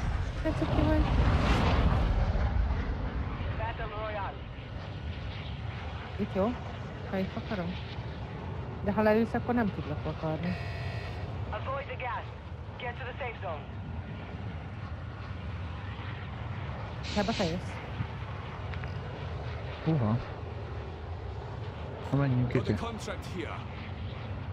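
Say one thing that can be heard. A large plane's engines drone steadily.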